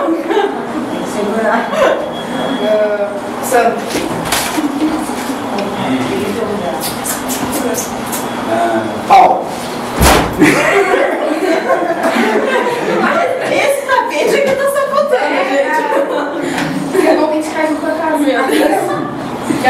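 Girls and women chatter and laugh together nearby.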